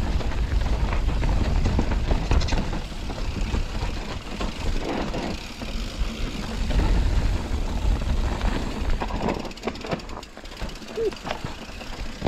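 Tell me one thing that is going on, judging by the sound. A bicycle frame rattles and clanks over bumps.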